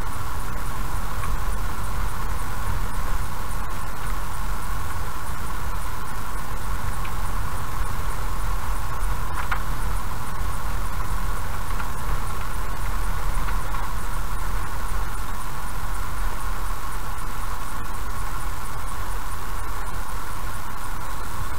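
A car drives slowly along a road with a steady low rumble.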